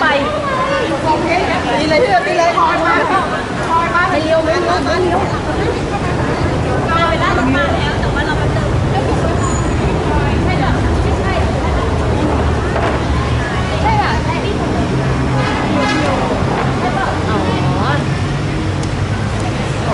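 A crowd of women chatters excitedly close by.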